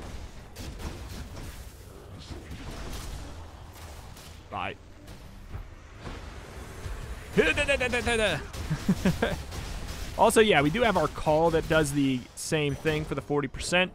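Swords slash and blasts burst in quick bursts of fighting.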